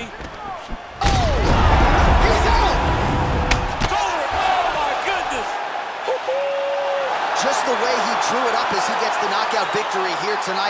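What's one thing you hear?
A crowd roars and cheers.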